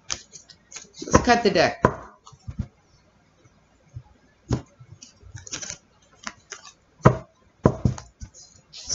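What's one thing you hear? Playing cards rustle and tap on a table.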